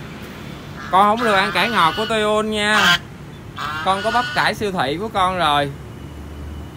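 A domestic goose honks.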